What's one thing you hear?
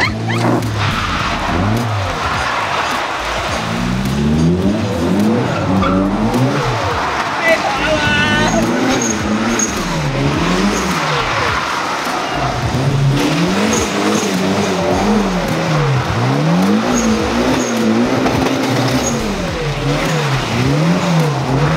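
Tyres screech on wet tarmac as a car slides.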